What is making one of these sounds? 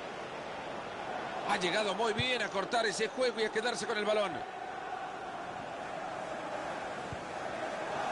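A stadium crowd murmurs steadily in the background.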